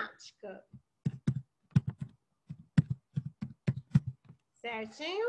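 Keys clack on a keyboard in quick taps.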